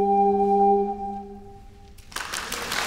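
A brass ensemble holds a final chord in a large echoing hall.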